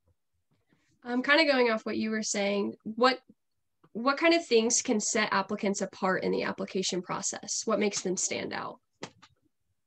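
A young woman speaks calmly and clearly into a microphone, heard as if over an online call.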